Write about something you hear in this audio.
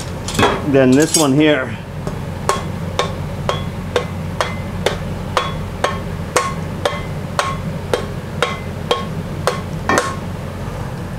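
A hammer strikes metal in steady, ringing blows.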